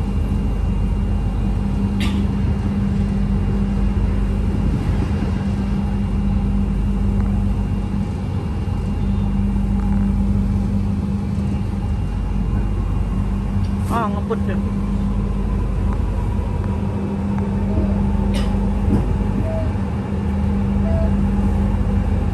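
A train hums and rumbles steadily along an elevated track.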